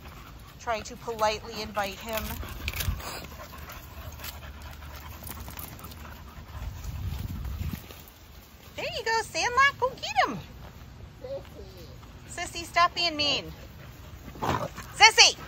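A dog whines and yelps in short, high, wavering bursts nearby.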